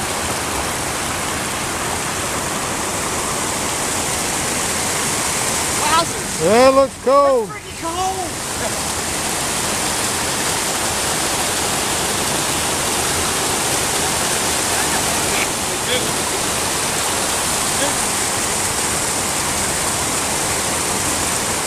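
A stream rushes steadily over rocks.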